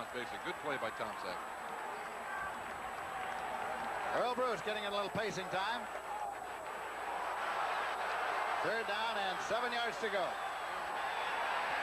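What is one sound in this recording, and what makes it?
A large crowd roars in a stadium.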